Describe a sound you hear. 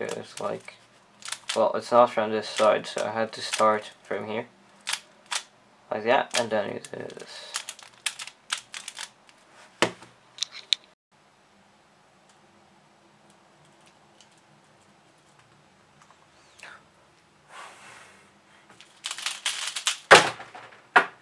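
A plastic puzzle cube clicks and clacks as it is twisted.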